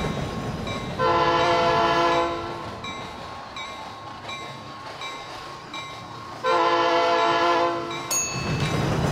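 A train horn blares in two long blasts.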